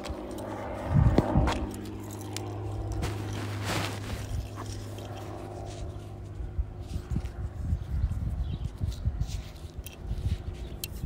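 A young man talks casually, close to a phone microphone.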